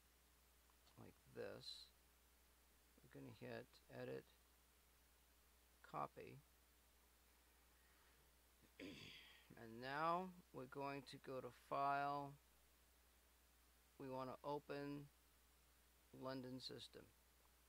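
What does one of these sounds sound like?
A young man talks calmly and close to a microphone, with pauses.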